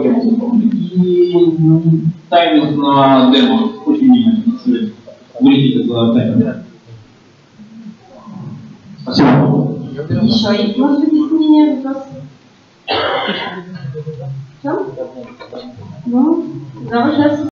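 A young woman speaks to a group with pauses between phrases.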